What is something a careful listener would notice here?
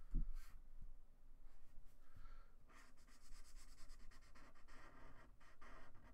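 A marker squeaks on paper.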